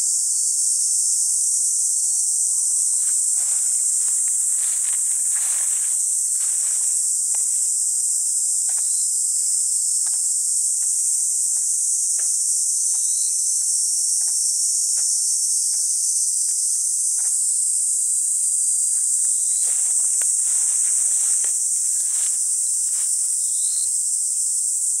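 Wind rustles through tall grass and flowers outdoors.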